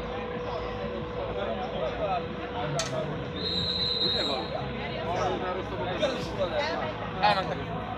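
A metal spatula scrapes a pan.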